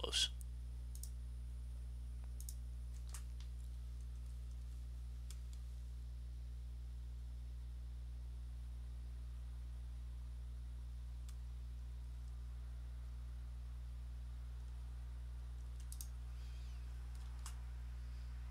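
Soft interface clicks and chimes sound as menus open and close.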